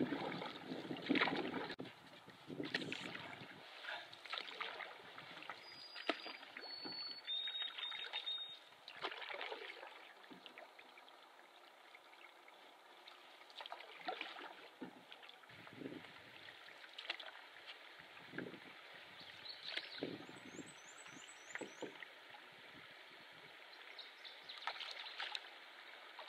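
A paddle splashes and drips in water at intervals.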